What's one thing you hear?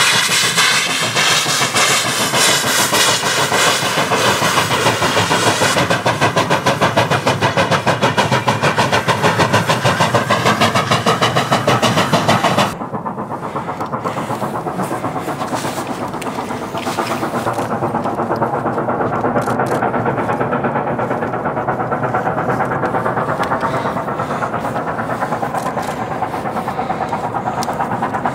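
A steam locomotive chuffs hard and fast as it hauls a train.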